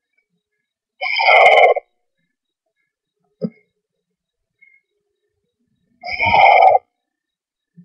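A young bird gives loud, rasping calls close by.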